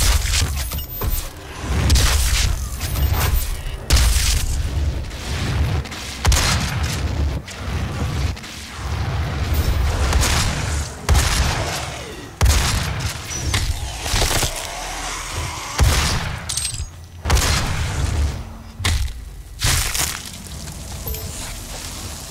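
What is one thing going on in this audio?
Explosions burst with deep rumbles.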